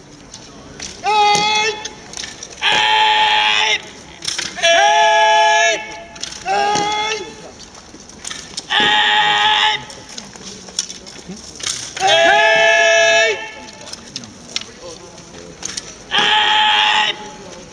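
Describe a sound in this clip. Men shout long, drawn-out calls loudly, one after another.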